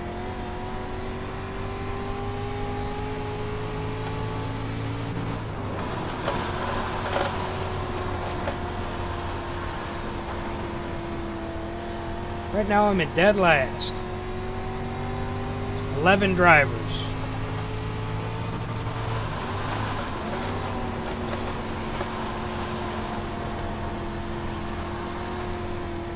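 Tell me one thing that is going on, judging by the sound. A racing car engine drones steadily, its pitch dipping and rising as the car slows and speeds up.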